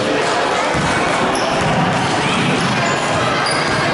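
A basketball bounces on the floor as a child dribbles.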